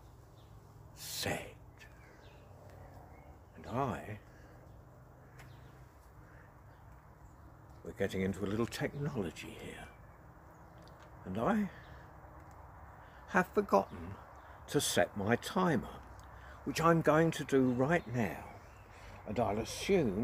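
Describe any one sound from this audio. An elderly man speaks calmly and expressively, close by.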